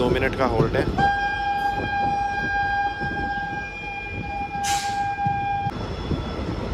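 A train horn sounds a long, steady blast.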